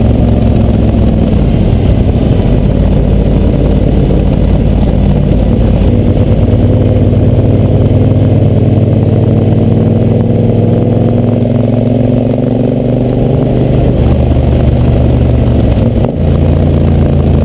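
A motorcycle engine drones steadily up close, rising and falling in pitch as it shifts gears.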